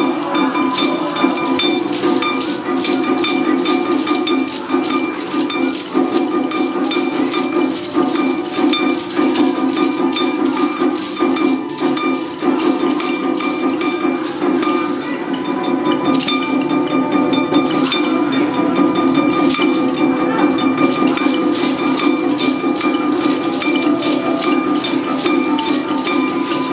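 A recorded folk song plays over a loudspeaker.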